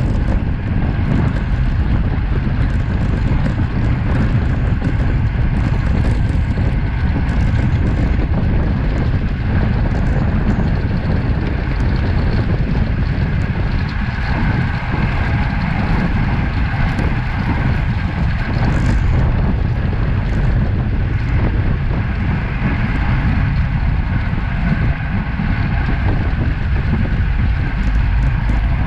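Wind roars steadily across a close microphone outdoors.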